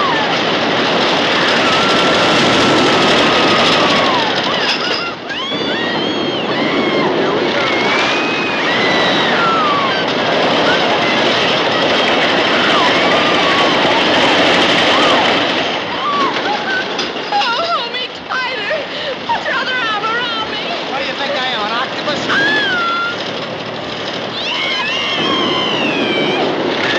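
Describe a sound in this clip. A roller coaster rattles and roars along its wooden track.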